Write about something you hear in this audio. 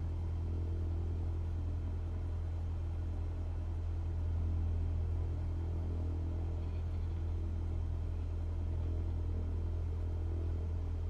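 An aircraft engine drones low and steady inside a cabin.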